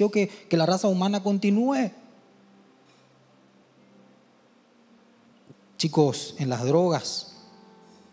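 A young man speaks calmly through a microphone, with pauses.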